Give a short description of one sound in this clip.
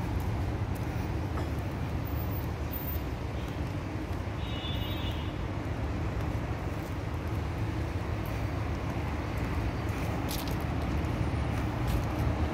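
City traffic rumbles steadily outdoors, with engines idling and cars passing.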